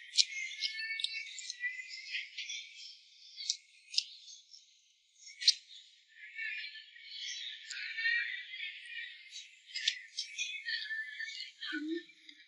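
A man smacks his lips and slurps while eating, close by.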